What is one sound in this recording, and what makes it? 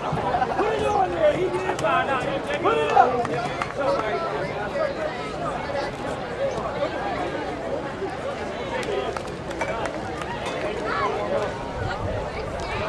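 Men and women in a crowd nearby talk and call out outdoors.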